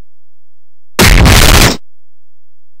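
A heavy blow lands with a loud, harsh smack.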